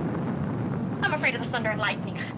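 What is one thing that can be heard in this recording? A young girl speaks urgently, close by.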